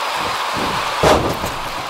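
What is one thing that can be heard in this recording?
A body hits a wrestling mat with a heavy thud.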